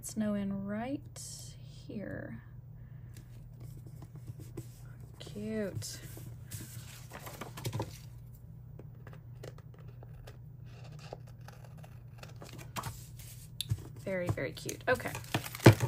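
Paper pages rustle and slide as they are handled.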